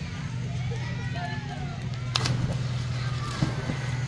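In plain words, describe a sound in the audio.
A child jumps off a diving board and lands in the water with a loud splash.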